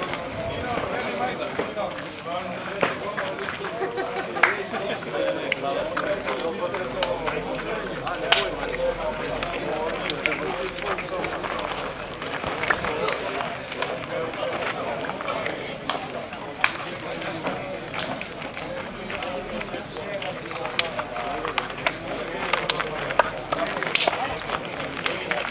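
A crowd of young men chatters and talks nearby, outdoors.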